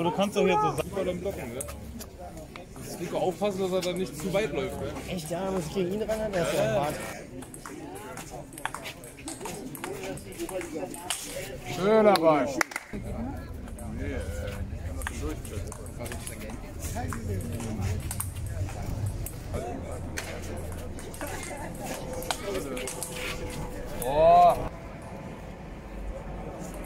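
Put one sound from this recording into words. A ping pong ball clicks back and forth against paddles and a table outdoors.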